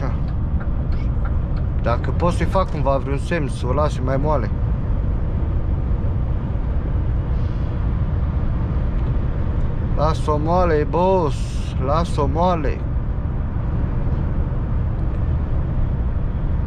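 Tyres roar on a motorway.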